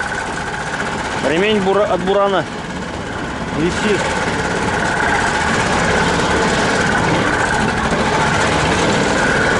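A vehicle engine runs steadily and loudly.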